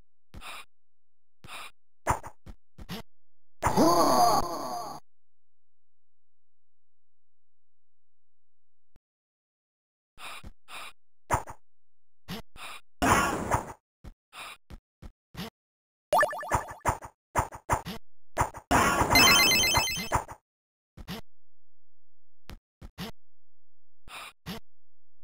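Short electronic game sound effects blip and chirp.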